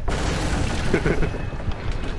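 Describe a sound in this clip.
A heavy wooden battering ram smashes through with a loud crash.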